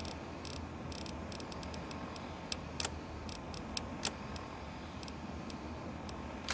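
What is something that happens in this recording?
Menu selections click softly, one after another.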